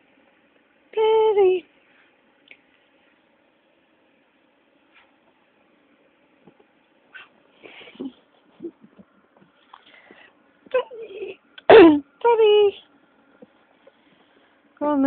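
A dog whines in high, drawn-out cries.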